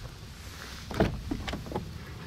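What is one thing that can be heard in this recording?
A car door handle clicks as the door is pulled open.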